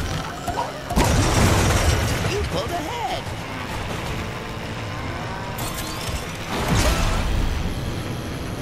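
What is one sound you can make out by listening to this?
Boosts whoosh loudly in bursts.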